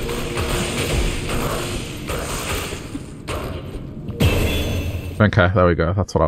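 A magic spell whooshes and crackles in a fight.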